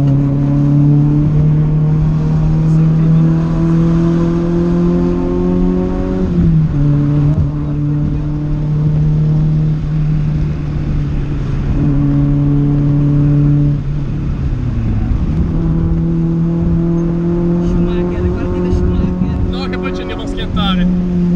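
A car engine drones steadily, dropping in pitch at each gear change.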